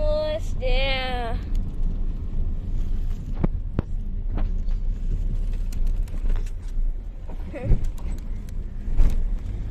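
A car engine rumbles low and steady from inside a moving car.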